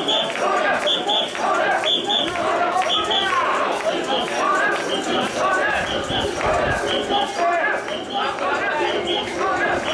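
A large crowd of men chants rhythmically and loudly outdoors.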